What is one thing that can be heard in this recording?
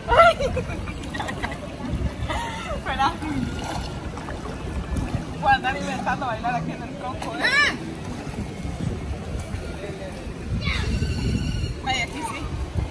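Water splashes around legs wading through a stream.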